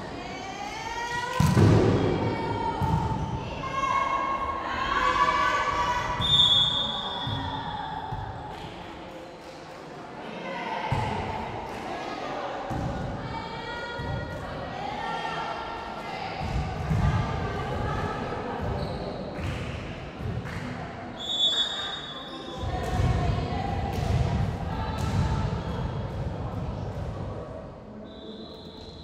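Young women players shout and call out to each other.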